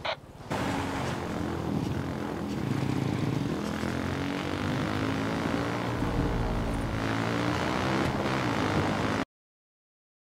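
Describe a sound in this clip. A dirt bike engine revs and hums steadily.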